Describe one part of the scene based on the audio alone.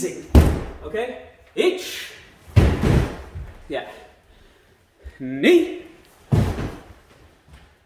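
Bare feet thud and slap on a wooden floor.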